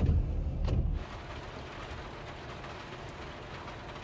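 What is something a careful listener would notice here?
Rain patters softly on a windscreen.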